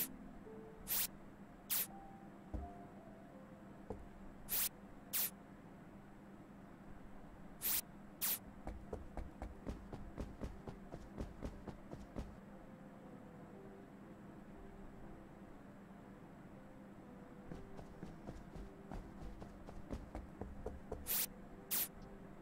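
Sharp electronic bleeps sound in pairs.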